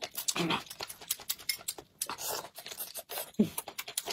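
A woman slurps from a bowl.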